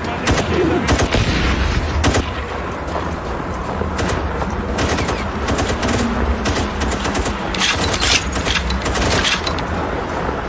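Rifle shots crack sharply in quick bursts.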